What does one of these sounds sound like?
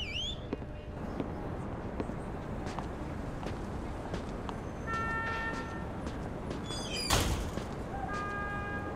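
Footsteps crunch on snow outdoors.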